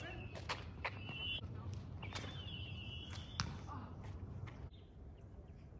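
Footsteps slap on pavement as a child runs.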